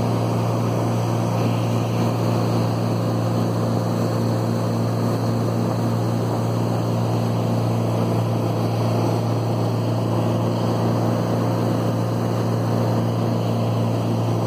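Water rushes and splashes in a boat's wake.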